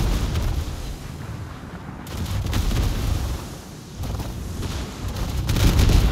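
Shells splash into the sea with deep booming rumbles.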